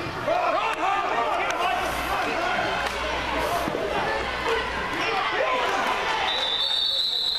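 A crowd of young players and spectators cheers and shouts.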